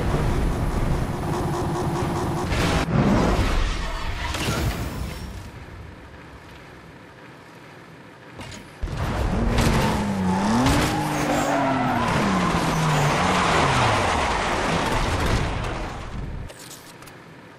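A racing car engine roars and revs up and down.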